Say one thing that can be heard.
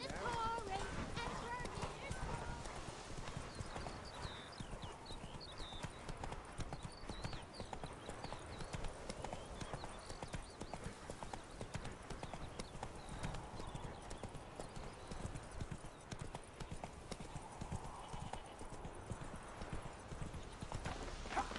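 A horse's hooves pound steadily on a dirt path.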